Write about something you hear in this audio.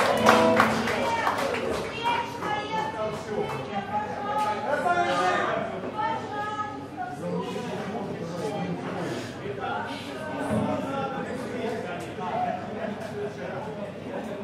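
Electric guitars play a melody through loudspeakers.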